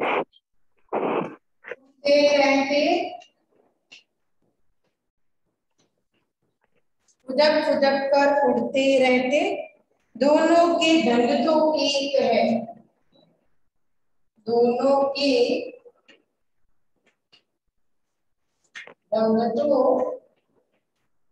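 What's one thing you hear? A young woman speaks clearly, as if teaching a class.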